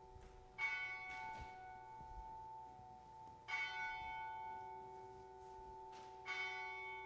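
An organ plays sustained chords that echo in a large hall.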